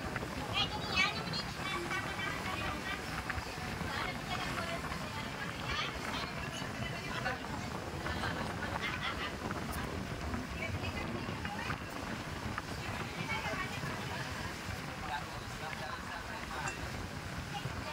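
Several adult women and men chat casually close by.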